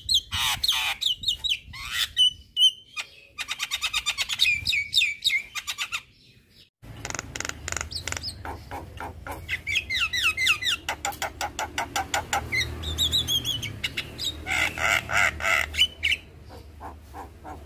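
A caged songbird sings loud, varied chattering whistles close by.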